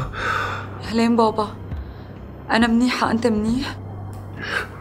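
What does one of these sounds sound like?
A young woman speaks anxiously, heard close by.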